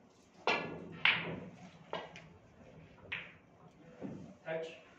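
Snooker balls click against each other and thud into cushions.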